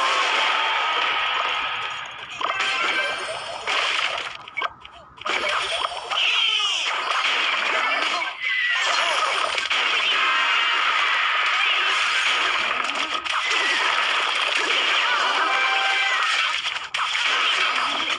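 Game sound effects clash and chime as small figures fight.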